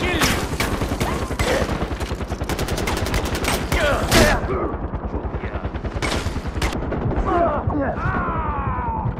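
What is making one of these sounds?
A helicopter's rotor thuds steadily nearby.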